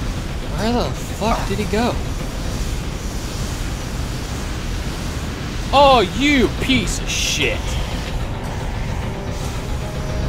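Flames burst and roar.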